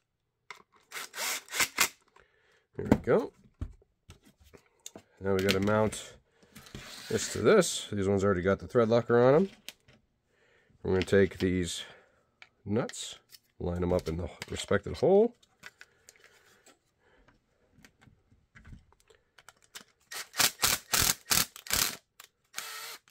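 A cordless impact driver whirs and rattles in short bursts, driving screws.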